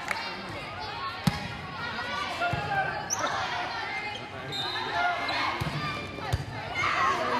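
Sneakers squeak on the hard court floor.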